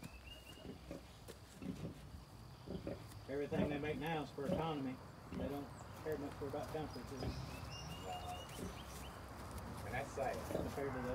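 Small boots scuff on soft dirt.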